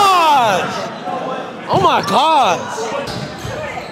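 A young man shouts and cheers excitedly nearby.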